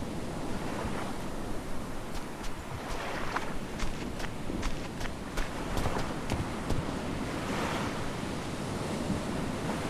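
Footsteps crunch softly over grass and sand.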